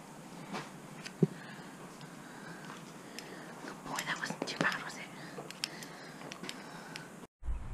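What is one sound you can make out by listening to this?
Metal buckles on a horse's halter clink and rattle.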